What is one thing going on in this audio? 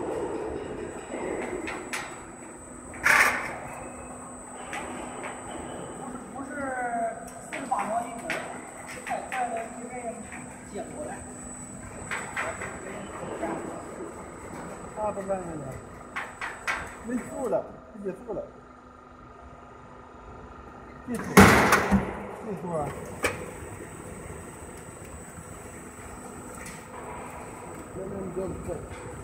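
Metal parts clank and knock in a machine.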